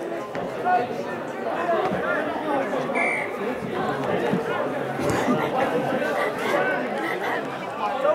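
Young men shout and call out across an open outdoor field.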